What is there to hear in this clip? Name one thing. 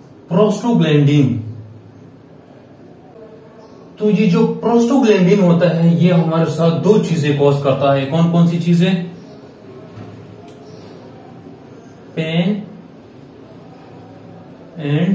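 A young man speaks calmly and clearly, as if teaching.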